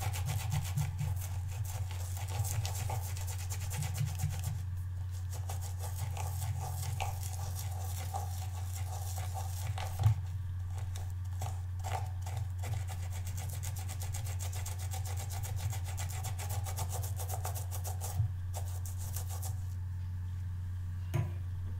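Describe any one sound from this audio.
A brush scrubs softly against a rubber cleaning pad.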